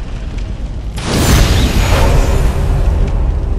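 A loud magical burst whooshes and roars.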